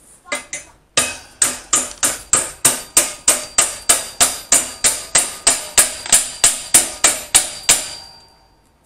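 A hammer strikes metal in quick, steady, ringing blows.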